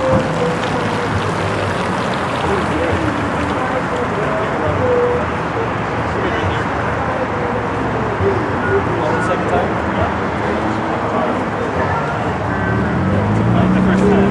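Tyres squeal on wet pavement.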